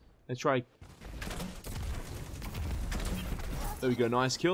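A heavy gun fires with loud rumbling blasts.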